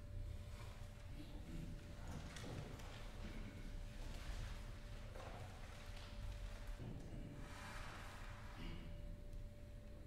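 A man speaks quietly at a distance.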